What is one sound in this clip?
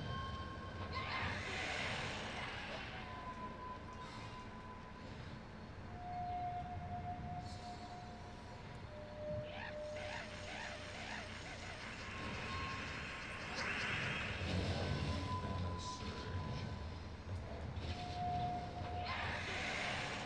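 Magical chimes and bursts ring out from a game.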